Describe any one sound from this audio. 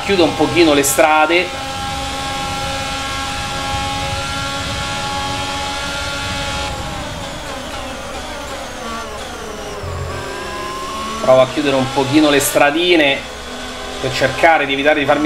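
A racing car engine screams at high revs, then drops as the car brakes.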